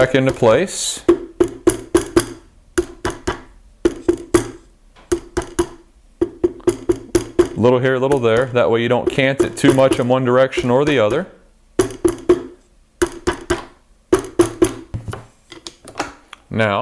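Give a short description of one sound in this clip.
A plastic mallet taps repeatedly on a rifle barrel.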